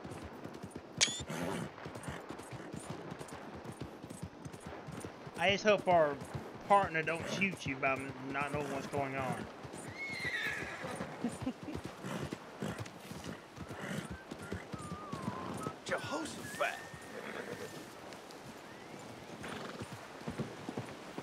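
A horse's hooves thud steadily on the ground.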